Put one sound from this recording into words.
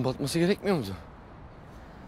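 A young man calls out loudly nearby.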